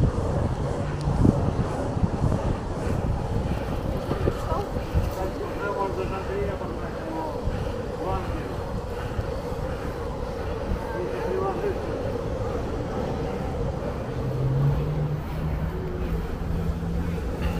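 Skateboard wheels rumble steadily on pavement outdoors.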